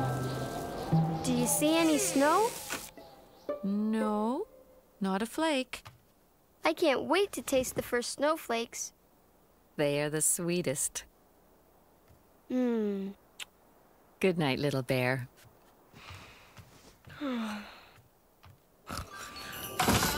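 A young boy speaks softly.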